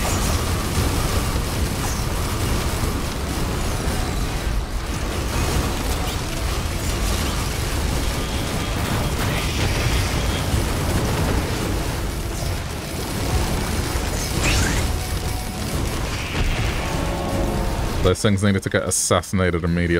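Weapons fire and blasts crackle rapidly.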